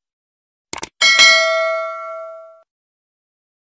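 A small bell rings and fades away.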